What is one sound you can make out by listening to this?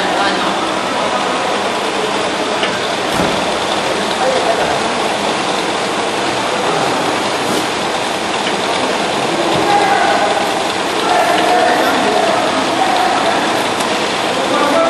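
A packing machine runs with a steady clattering hum.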